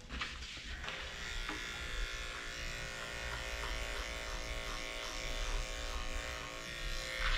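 Electric clippers buzz steadily.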